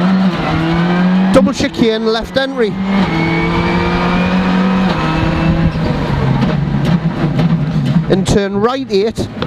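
A rally car engine roars loudly at high revs, rising and dropping as the gears change.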